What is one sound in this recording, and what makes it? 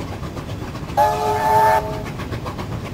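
A steam locomotive's whistle blows loudly for a moment.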